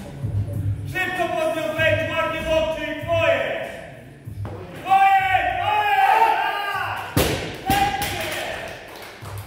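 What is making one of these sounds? A man yells and roars loudly with strain nearby.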